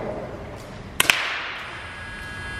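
A pistol fires a sharp shot in a large echoing hall.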